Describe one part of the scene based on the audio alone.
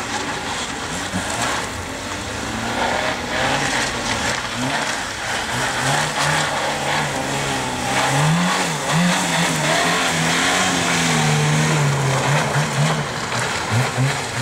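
Tyres squeal on tarmac as the car slides through turns.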